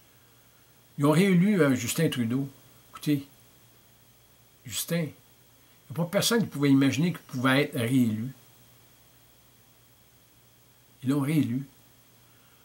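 An elderly man speaks calmly and close up, with short pauses.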